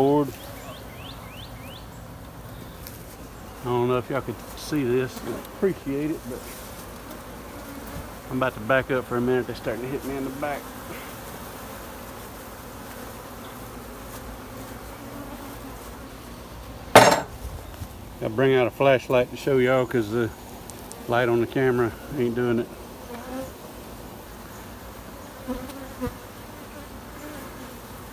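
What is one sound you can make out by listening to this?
Bees hum and buzz steadily close by.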